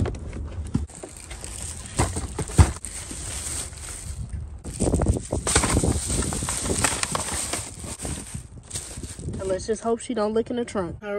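Plastic bags rustle and crinkle as they are moved around.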